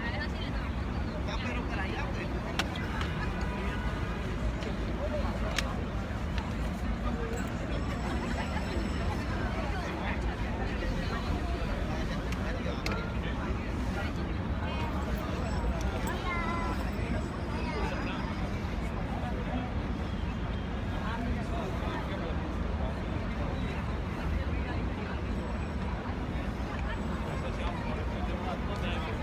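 A large outdoor crowd murmurs and chatters all around.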